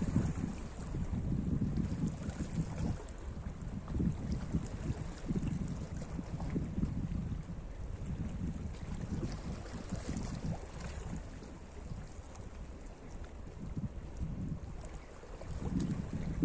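Small waves lap gently against rocks at the shore.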